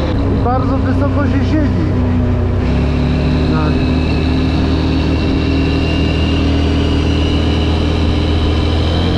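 Wind rushes past a moving rider.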